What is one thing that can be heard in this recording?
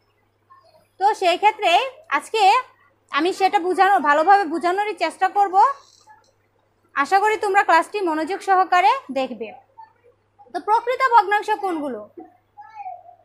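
A young woman speaks clearly and with animation, close by.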